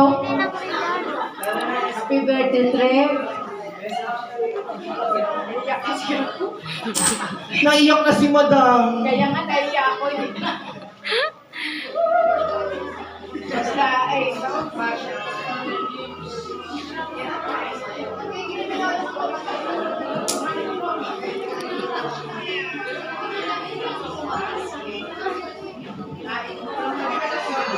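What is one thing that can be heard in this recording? A woman speaks with feeling into a microphone in an echoing hall.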